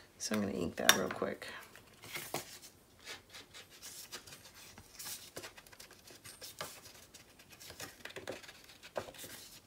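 Small objects tap and click on a hard tabletop.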